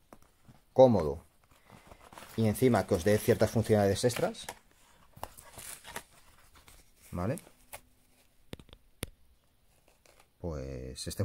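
Hands rustle and rub stiff denim fabric and card tags up close.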